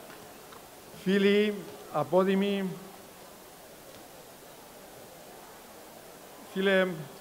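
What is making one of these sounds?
A man speaks with measured pauses through a microphone in a large echoing hall.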